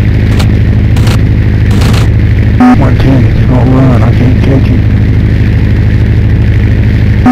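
A plane's engine drones steadily and loudly.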